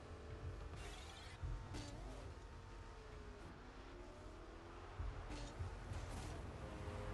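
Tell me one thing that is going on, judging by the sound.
A ball is struck with hollow thumps.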